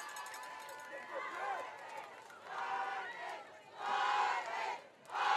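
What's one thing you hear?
A group of young women shout a cheer together outdoors, heard from a distance.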